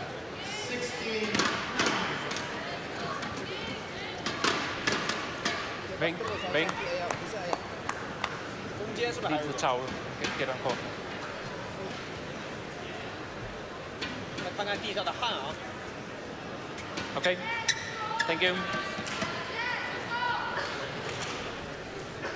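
Sneakers squeak on an indoor court floor.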